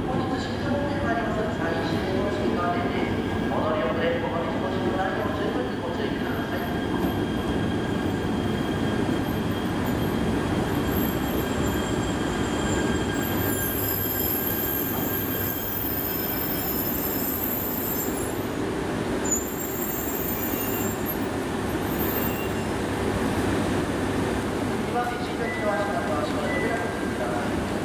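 A high-speed train rumbles slowly into the station and brakes to a stop.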